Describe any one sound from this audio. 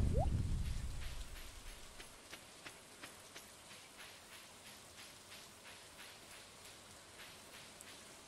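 Footsteps tap steadily on a dirt path.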